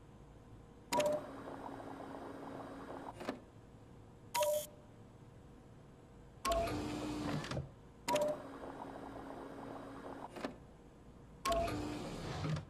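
A machine beeps briefly.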